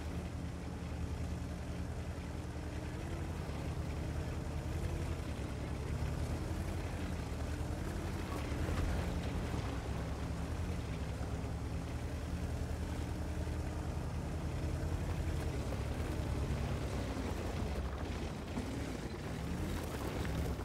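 A tank engine rumbles steadily.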